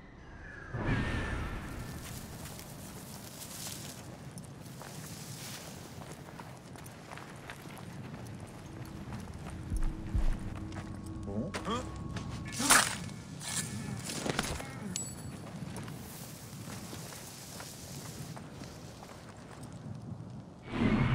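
Footsteps rustle through dry brush.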